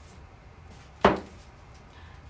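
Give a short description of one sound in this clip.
A book thumps down onto a table.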